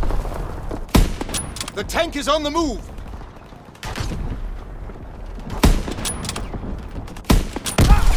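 Loud rifle shots crack, each followed by a short echo.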